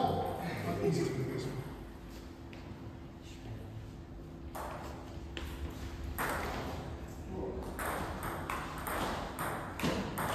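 Table tennis balls click on paddles and a table in an echoing hall.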